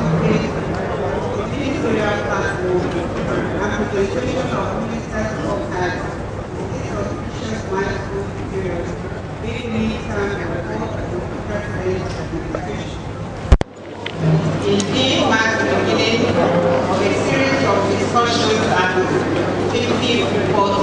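A woman speaks steadily into a microphone, heard through loudspeakers in a large room.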